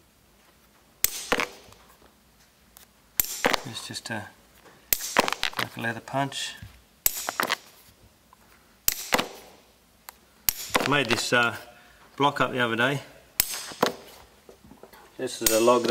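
A metal hammer strikes a leather punch on a wooden block with sharp knocks.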